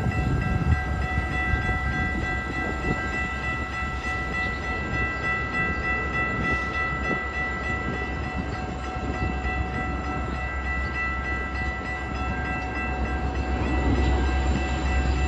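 Train wheels clack rhythmically over the rail joints.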